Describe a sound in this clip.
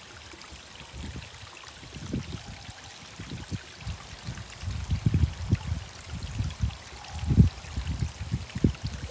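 Wind gusts and rumbles outdoors, growing stronger.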